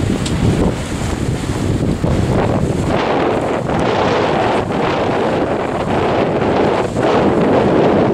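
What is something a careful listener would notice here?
Small waves lap against a rocky shore.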